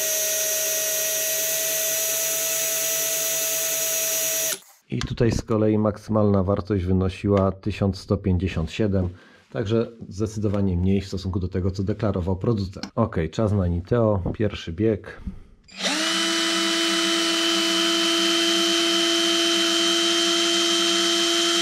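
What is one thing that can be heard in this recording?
A cordless drill whirs steadily at high speed.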